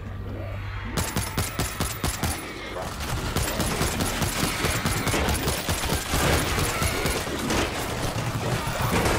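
Rapid gunfire bursts out in quick shots.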